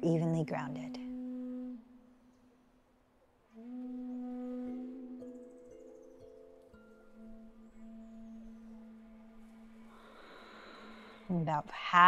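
Singing bowls ring with long, humming tones that overlap and slowly fade.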